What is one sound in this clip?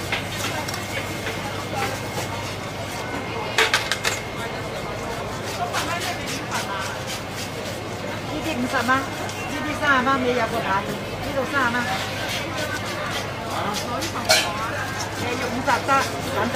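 A cleaver chops hard into fish on a wooden block.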